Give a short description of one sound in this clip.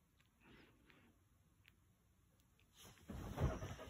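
A young boy giggles softly close by.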